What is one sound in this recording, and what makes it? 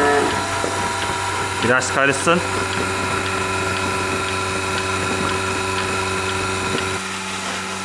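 A milking machine pulsator clicks in a steady rhythm.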